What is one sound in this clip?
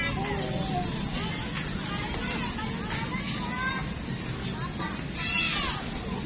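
Children shout and chatter at a distance outdoors.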